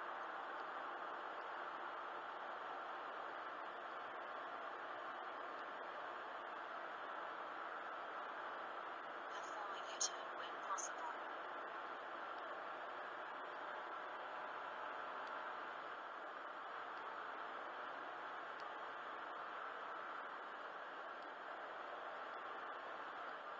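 Tyres roar steadily on a smooth road, heard from inside a moving car.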